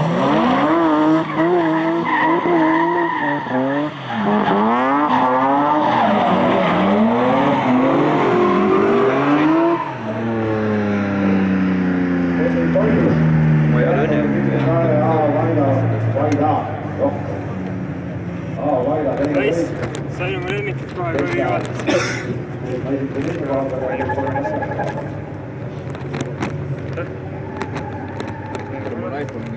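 Car engines rev hard and roar as cars drift.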